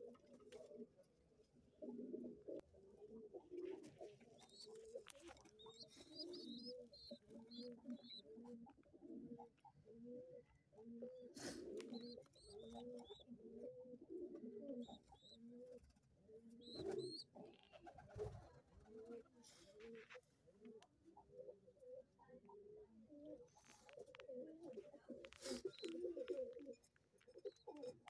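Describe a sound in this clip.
Pigeons coo in low, throaty warbles close by.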